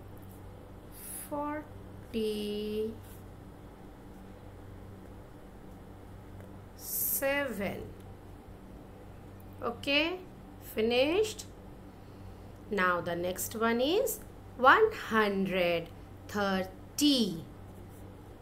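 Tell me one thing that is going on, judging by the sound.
A woman speaks slowly and clearly, as if teaching, over an online call.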